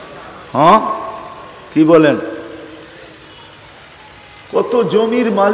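An elderly man preaches in a chanting, sing-song voice through a microphone and loudspeakers, with a ringing echo.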